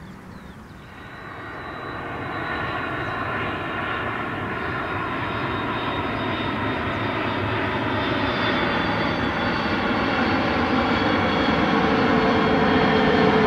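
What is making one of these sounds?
A jet airliner's engines whine and roar loudly as it approaches, growing louder.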